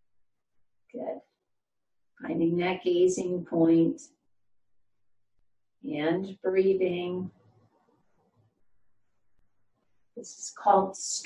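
An elderly woman speaks calmly and clearly, close by, in short phrases.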